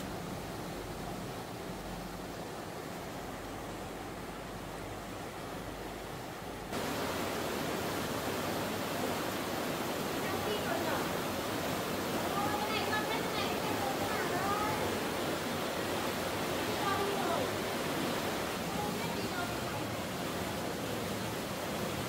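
Water rushes and gurgles steadily.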